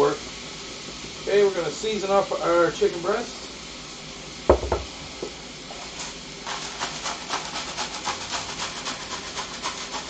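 A seasoning shaker rattles over a pan.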